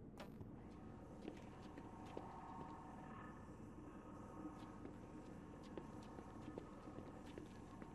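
Footsteps run quickly over hard pavement.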